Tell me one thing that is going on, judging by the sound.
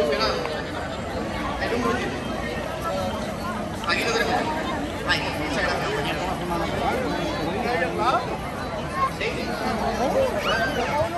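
A crowd of men, women and children chatters outdoors.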